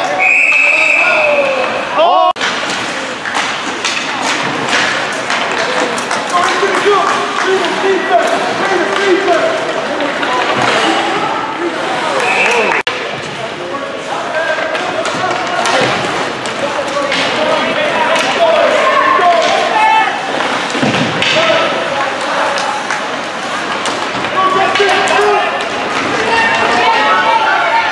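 A crowd of spectators shouts and cheers in a large echoing rink.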